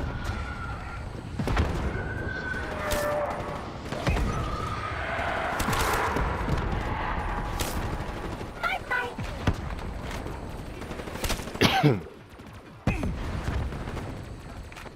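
Gunfire cracks in bursts.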